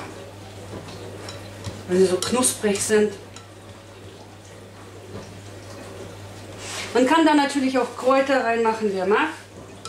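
A spoon scrapes and taps inside a pot.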